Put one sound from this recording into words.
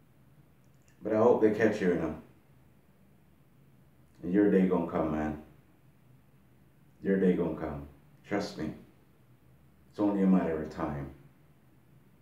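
A man speaks close by in short, calm phrases with pauses between them.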